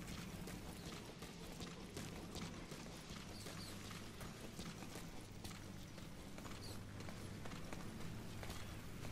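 Footsteps run quickly over a gritty floor.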